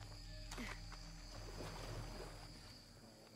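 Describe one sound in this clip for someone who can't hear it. Water splashes under wading feet.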